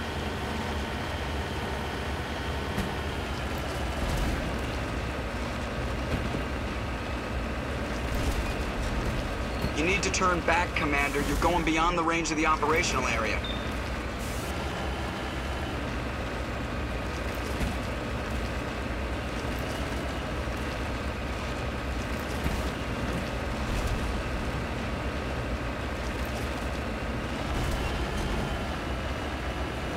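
Heavy tyres rumble over rocky ground.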